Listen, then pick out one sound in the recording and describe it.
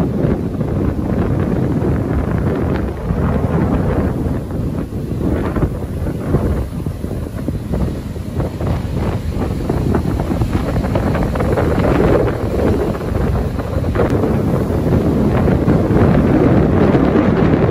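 Waves crash and roar steadily close by.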